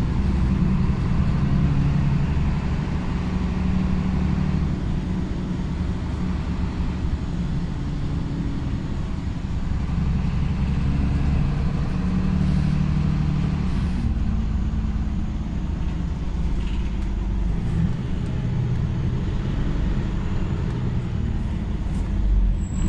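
A bus engine rumbles steadily from inside.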